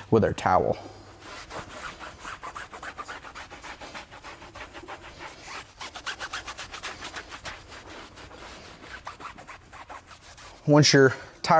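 A cloth rubs against a rubber tyre.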